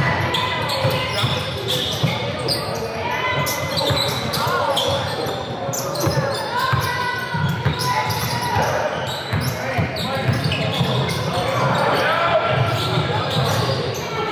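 Sneakers squeak on a hardwood floor in a large echoing gym.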